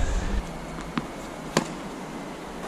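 A tennis racket hits a ball with a sharp pop.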